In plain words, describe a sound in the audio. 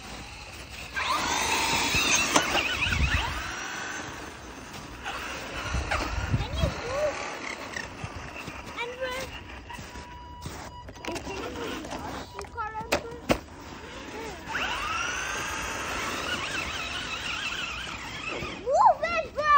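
A toy car's electric motor whines, rising and falling in pitch as it speeds up and slows down.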